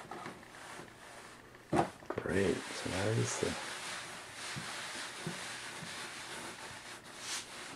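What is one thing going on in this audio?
Hands press and pat soft dough.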